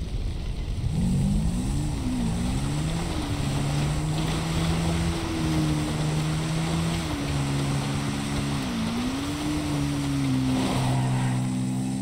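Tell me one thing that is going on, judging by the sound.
A quad bike engine revs and drones.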